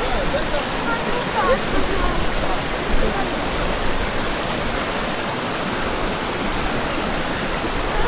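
A stream rushes and splashes over rocks nearby.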